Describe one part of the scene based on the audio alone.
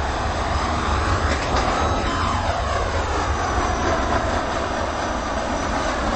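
Train wheels click over rail joints.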